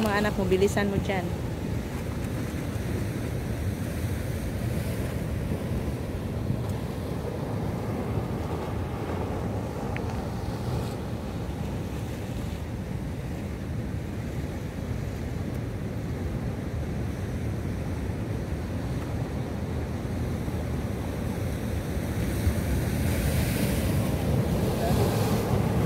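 Sea waves wash steadily against rocks nearby.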